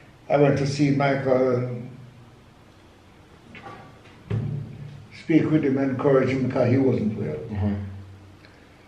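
An elderly man speaks calmly and slowly close by.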